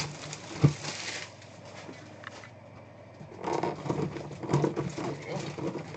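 A cardboard box scrapes and rustles as it is handled.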